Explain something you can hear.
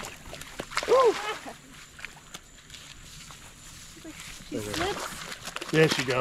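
Water splashes as an alligator thrashes at the bank.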